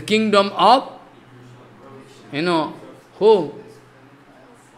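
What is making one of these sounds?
An elderly man speaks slowly and expressively into a close microphone, with pauses.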